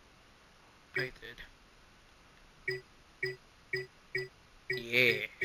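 Short menu blips chime one after another.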